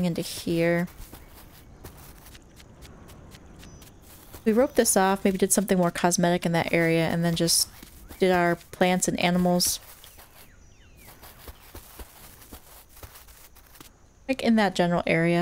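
Footsteps patter softly on dry ground.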